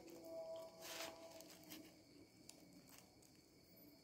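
A young man bites into a paper-wrapped wrap.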